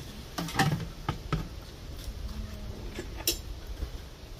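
Plastic dishes knock and clatter close by.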